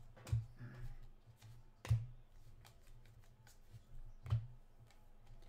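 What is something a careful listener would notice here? Hands knock sharply a few times.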